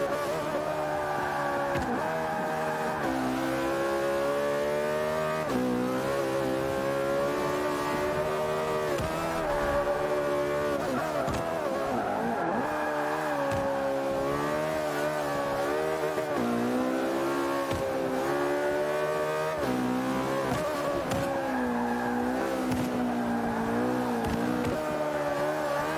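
A racing car engine roars, rising in pitch and dropping sharply with each gear change.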